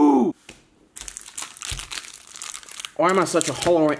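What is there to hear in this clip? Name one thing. A plastic wrapper crinkles as hands open it.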